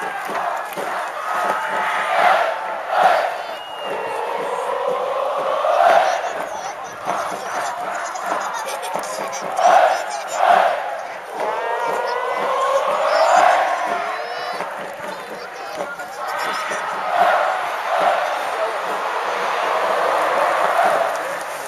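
A large stadium crowd chants and cheers loudly, swelling and falling.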